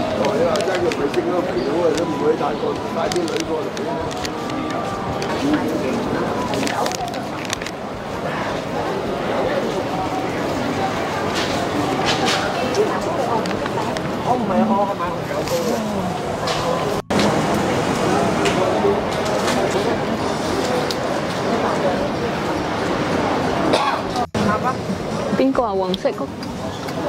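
Men and women chatter nearby on a busy street.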